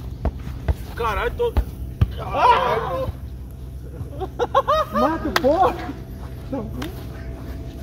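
Young men shout and call out to each other nearby, outdoors.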